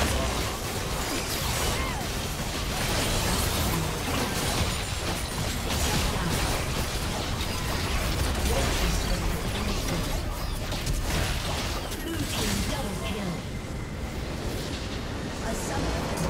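Magical blasts and blows clash rapidly in a fast computer game battle.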